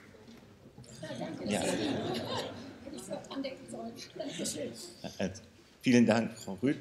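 A man speaks at a distance in a large hall.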